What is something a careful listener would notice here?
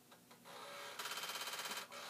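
A computer gives a rapid, steady string of beeps.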